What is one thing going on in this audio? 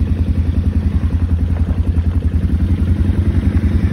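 A quad bike engine rumbles nearby.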